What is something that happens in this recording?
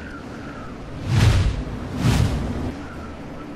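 A glider whooshes past twice.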